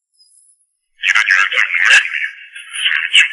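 A young man talks tensely into a phone up close.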